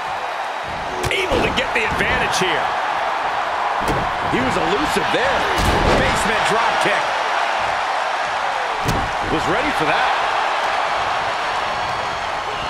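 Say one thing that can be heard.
Blows land with heavy thuds on bodies and the ring mat.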